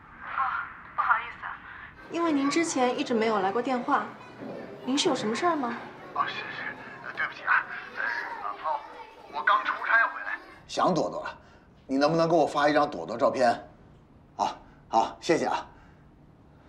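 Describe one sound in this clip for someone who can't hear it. A man speaks into a phone.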